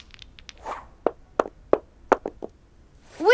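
A die clatters and rolls across a wooden table.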